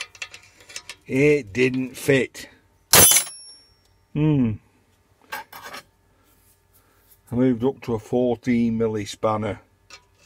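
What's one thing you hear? A metal wrench clinks against a metal tank.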